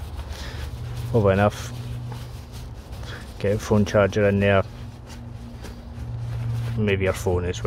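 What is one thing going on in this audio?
Nylon fabric rustles as a hand pushes into it.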